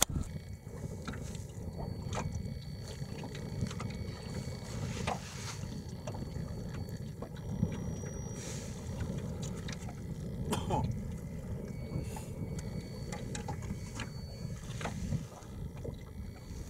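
Strong wind blusters outdoors, buffeting the microphone.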